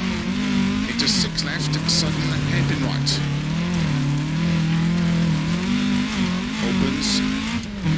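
Gravel sprays and crunches under the tyres.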